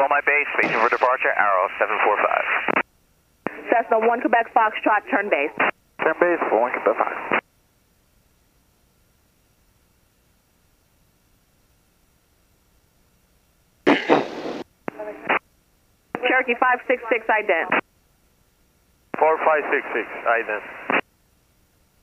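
A middle-aged man talks calmly over a headset intercom.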